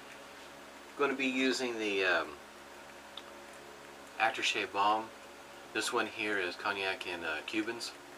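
A middle-aged man speaks calmly and close by, in short bursts.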